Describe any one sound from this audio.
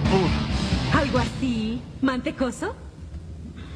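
A young woman speaks firmly.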